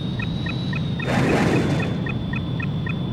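A missile launches with a loud whoosh.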